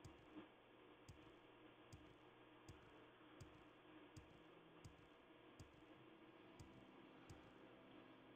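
Soft footsteps thud steadily on the ground.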